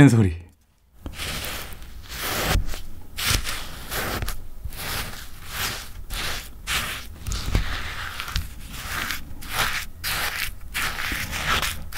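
A wooden spoon scrapes and stirs crumbly shaved ice close up.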